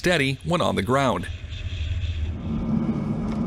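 A jet engine roars.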